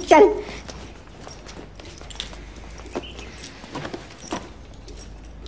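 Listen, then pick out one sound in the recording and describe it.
Footsteps walk slowly across a hard floor.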